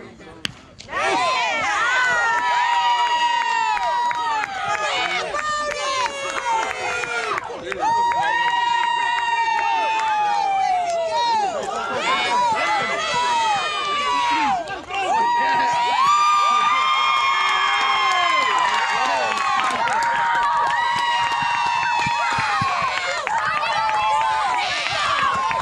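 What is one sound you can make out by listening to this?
Children shout and cheer excitedly nearby.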